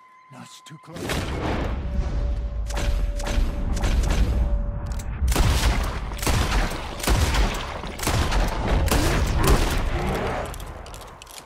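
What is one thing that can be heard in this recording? A bear roars and growls.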